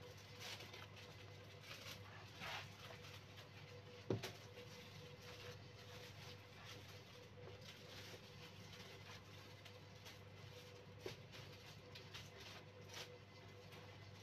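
Baked potato halves are lifted and set down on a metal tray with soft taps.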